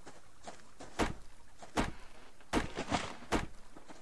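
An axe chops into a tree trunk with heavy thuds.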